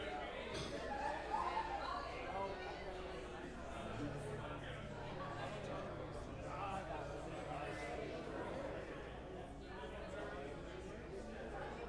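A band plays live music.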